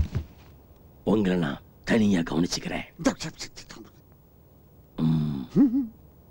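A second middle-aged man answers mockingly, close by.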